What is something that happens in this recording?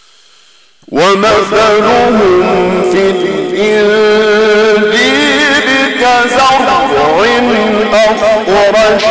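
A man chants loudly and melodiously through a microphone, echoing in a large hall.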